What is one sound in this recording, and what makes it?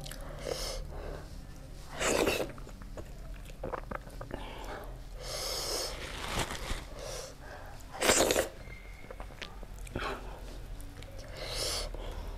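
Fingers squish and mix soft rice close up.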